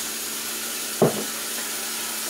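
A glass is set down on a hard counter with a sharp knock.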